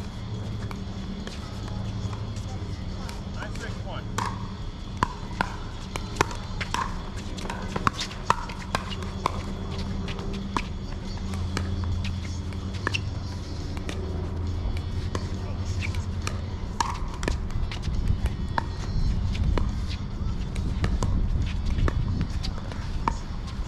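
Paddles pop sharply against a plastic ball in quick rallies.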